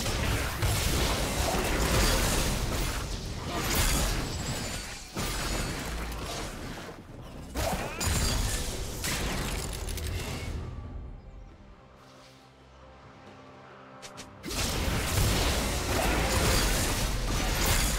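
Magic spells whoosh and crackle in a game battle.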